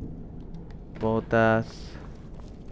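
A young man speaks briefly and loudly into a microphone.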